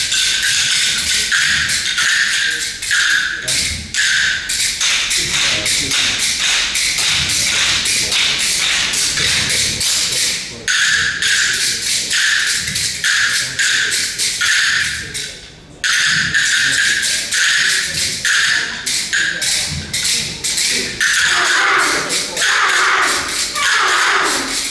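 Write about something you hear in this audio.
Children ring handbells in a quick tune in an echoing hall.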